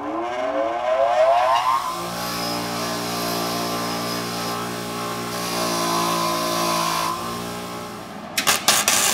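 A bench grinder motor spins up and hums steadily, then winds down.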